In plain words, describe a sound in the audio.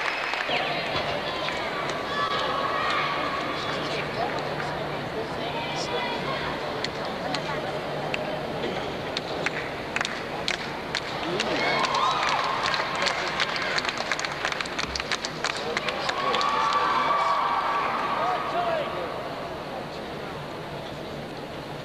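A large indoor crowd murmurs and chatters in an echoing arena.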